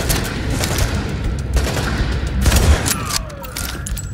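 Gunshots crack and echo.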